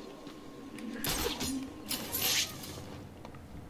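A cape whooshes through the air.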